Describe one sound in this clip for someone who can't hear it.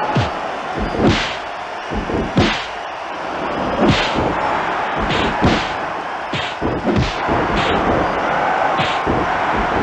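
A large crowd cheers steadily.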